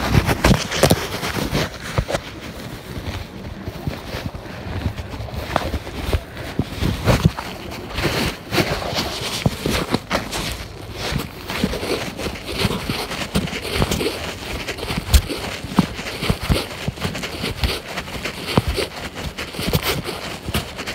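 Footsteps crunch on dry leaves and earth steps, close by.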